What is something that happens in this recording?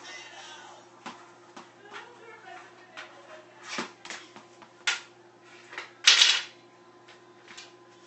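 A hockey stick clacks and scrapes on a hard floor.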